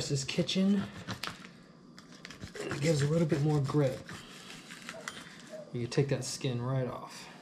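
A knife slices through soft fish on a board.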